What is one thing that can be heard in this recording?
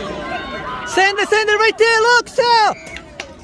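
A crowd of young people cheers loudly.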